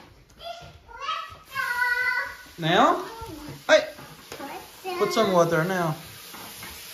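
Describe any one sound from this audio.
A toddler chatters and squeals in a high voice close by.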